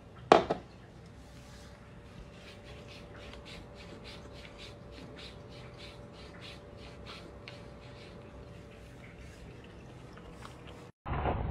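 A cat laps water from a glass with quick, regular licks.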